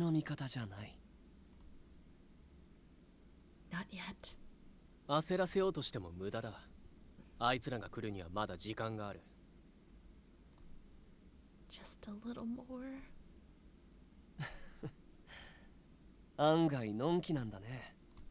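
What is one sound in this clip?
A young woman reads out lines with animation, close to a microphone.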